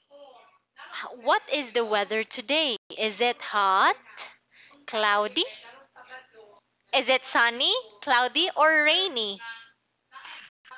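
A young woman speaks clearly and with animation over an online call.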